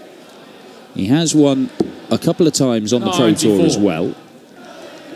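A man announces loudly through a microphone in a large hall.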